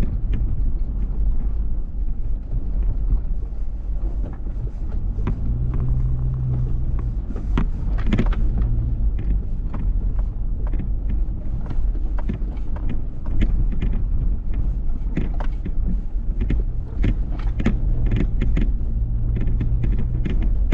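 The car's body knocks and rattles over bumps.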